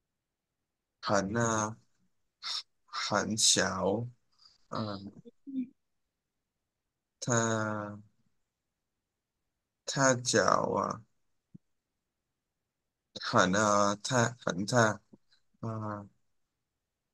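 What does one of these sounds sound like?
A woman reads out slowly and clearly through a microphone, with pauses.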